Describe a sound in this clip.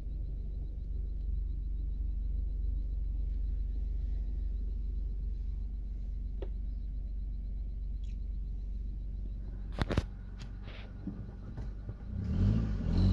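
A car engine rumbles low and steadily from inside the car.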